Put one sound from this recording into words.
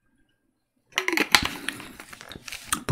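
A plastic bottle cap is screwed on.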